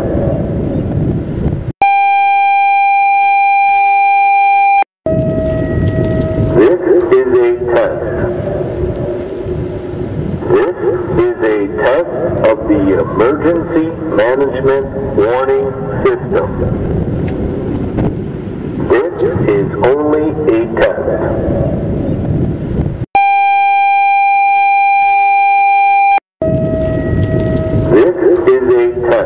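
A loud siren wails, switching between steady blaring tones and wavering howls.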